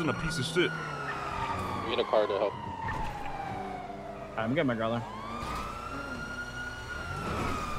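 A sports car engine hums and whines as the car drives along.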